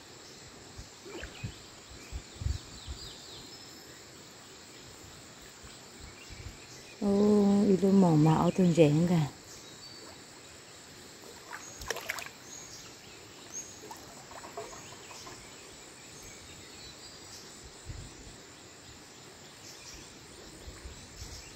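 Water splashes and drips as a net is hauled out of a river.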